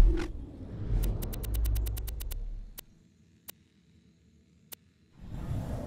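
A game menu clicks in quick ticks as items are scrolled through.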